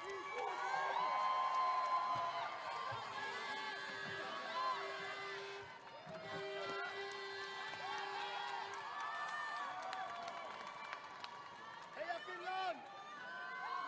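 A large crowd cheers and shouts in a big echoing arena.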